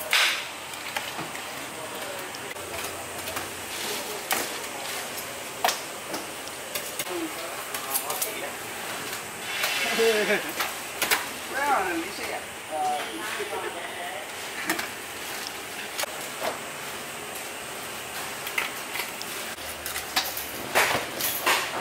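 Raw meat slaps and thuds onto a metal counter.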